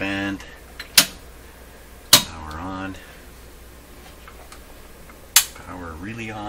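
A switch clicks sharply a few times.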